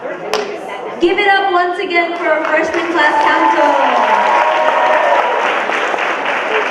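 Young people on a stage cheer and whoop.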